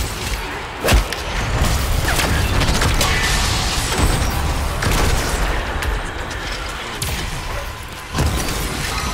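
Swirling energy rumbles and whooshes.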